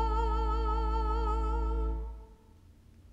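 An elderly woman sings a sustained note with vibrato through a microphone in a large, reverberant room.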